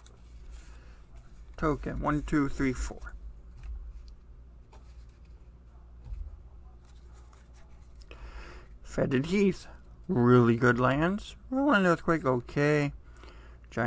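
Playing cards shuffle and slide against each other.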